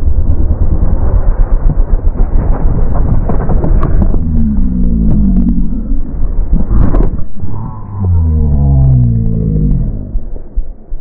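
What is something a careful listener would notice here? A dirt bike engine revs loudly and rises in pitch.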